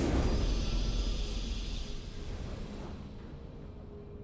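A triumphant video game fanfare sounds loudly and slowly fades away.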